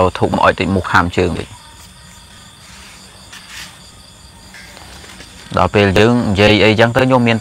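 A man speaks close to a phone microphone, in a calm, animated voice, with pauses.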